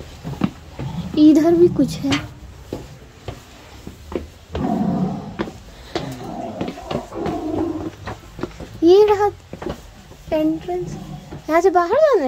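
Footsteps scuff and tap on rocky ground.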